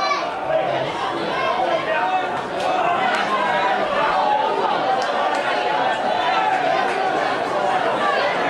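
Rugby players thud together in a tackle.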